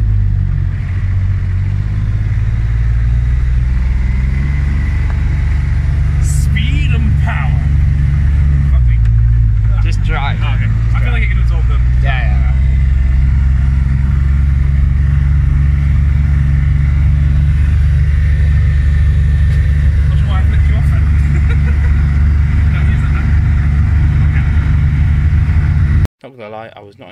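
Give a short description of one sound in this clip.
A car engine rumbles steadily, heard from inside the car.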